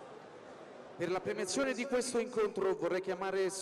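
A man announces loudly over a loudspeaker in a large hall.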